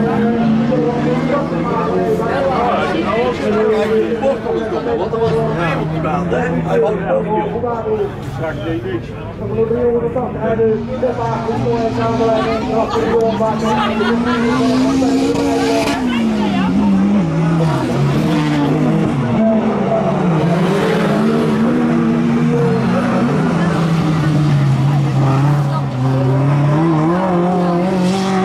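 Engines rise and fall in pitch as cars accelerate and slow down.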